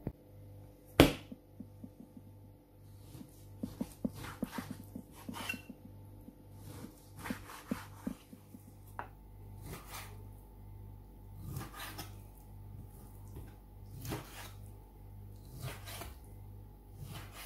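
A knife cuts through raw meat and knocks on a wooden board.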